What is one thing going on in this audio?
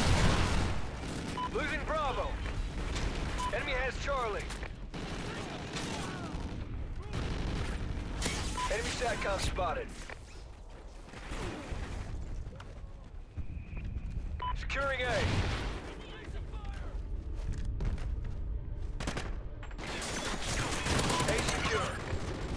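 Rapid gunfire bursts out in loud, sharp cracks.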